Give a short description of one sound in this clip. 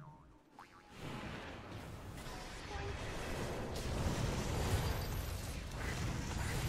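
Game spells crackle and blast in a busy fight.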